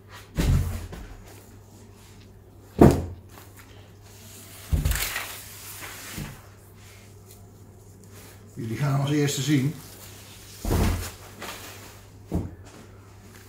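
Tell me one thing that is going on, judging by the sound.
Hard objects knock on a wooden table.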